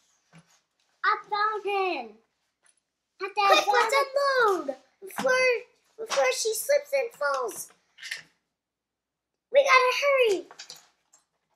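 A young girl talks calmly and closely.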